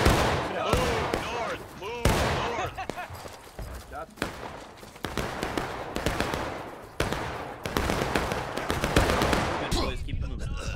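Rifles fire in loud, sharp cracks that echo through the woods.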